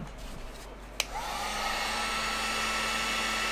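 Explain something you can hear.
A heat gun whirs and blows steadily.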